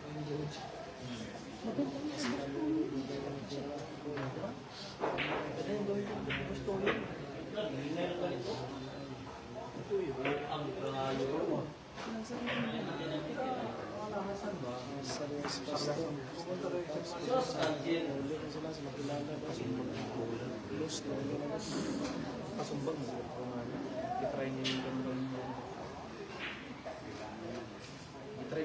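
A crowd of men and women chatters throughout.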